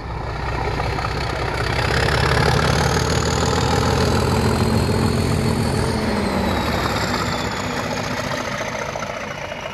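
Train wheels clatter on the rails.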